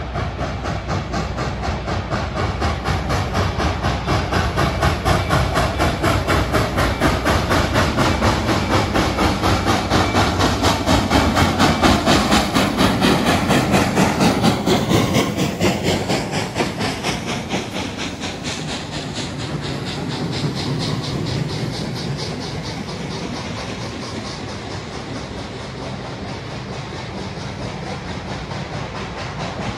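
Railway carriages rumble and clatter over the rails.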